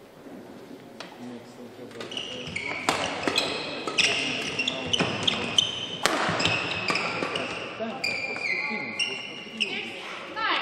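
Rackets smack a shuttlecock back and forth in a quick rally.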